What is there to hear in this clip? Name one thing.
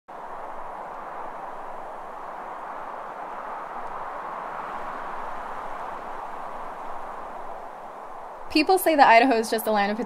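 Wind blows steadily across open grassland.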